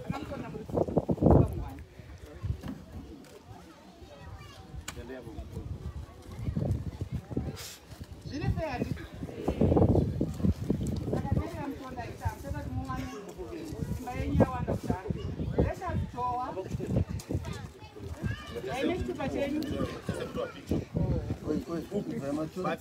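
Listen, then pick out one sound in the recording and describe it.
Several people chatter in the background outdoors.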